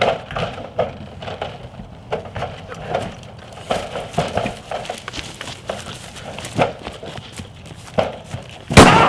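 Shoes scuff and knock against a brick wall as someone climbs.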